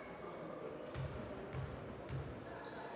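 A basketball bounces with dull thuds on the floor.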